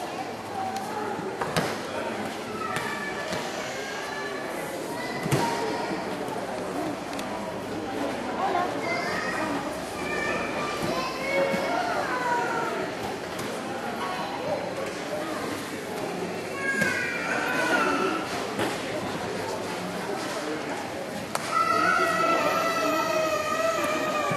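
A crowd of people chatters in an echoing hall.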